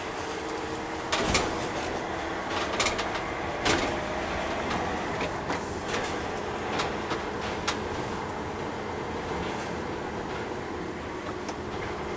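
A gear lever clunks as a gear is changed.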